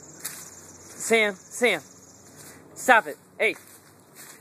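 A small dog yelps in short, high cries outdoors.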